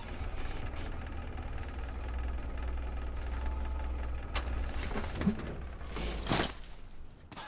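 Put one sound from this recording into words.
A vehicle engine rumbles steadily, then stops.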